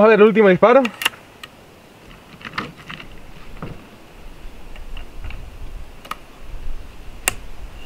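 Metal parts of a rifle click and knock as they are handled.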